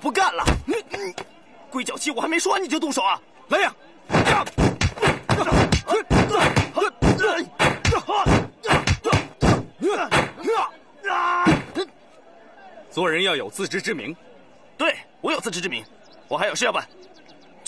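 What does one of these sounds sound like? A young man shouts in alarm nearby.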